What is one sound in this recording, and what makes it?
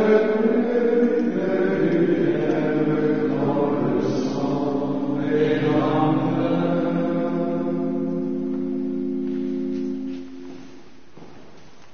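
Men chant together in a large echoing hall.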